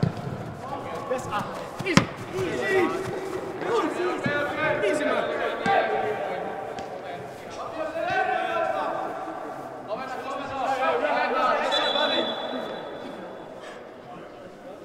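Young men shout and call to one another across a large echoing hall.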